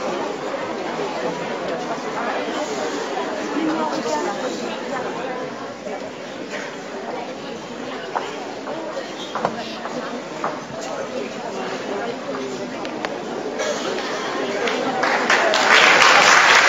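A group of boys murmurs and chatters nearby in a large echoing hall.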